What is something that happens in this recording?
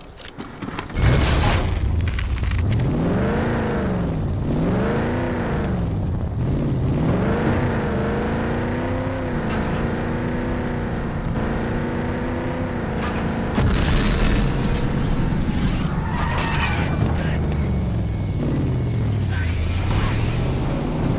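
A vehicle's engine roars and revs up and down as it drives.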